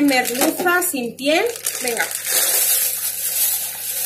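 A plastic bag crinkles in hands.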